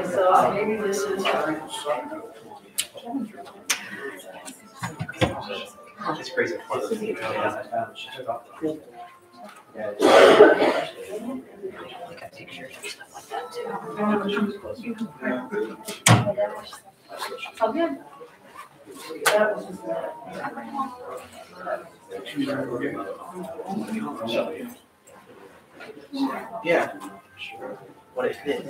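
Several men and women talk casually nearby.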